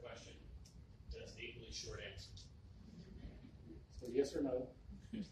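A middle-aged man speaks calmly into a clip-on microphone.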